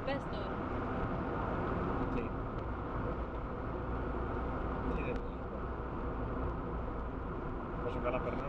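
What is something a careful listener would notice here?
A young woman speaks and laughs nearby.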